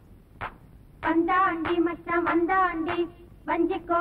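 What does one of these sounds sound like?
A young woman sings a high, lilting melody.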